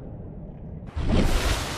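A building tool buzzes and whooshes briefly.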